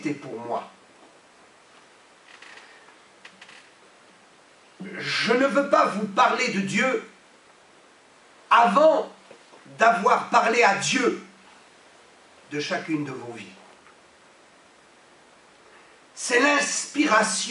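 A middle-aged man speaks with animation into a microphone, in bursts with pauses.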